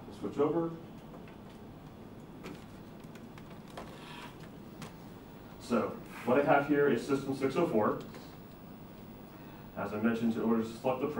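A man speaks to a group, pausing between phrases.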